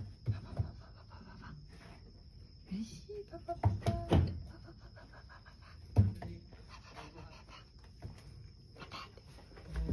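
A dog's tail swishes against a curtain.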